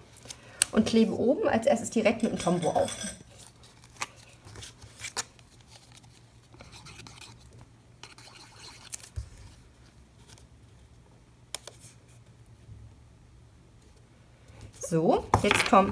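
Paper rustles and slides softly as it is handled.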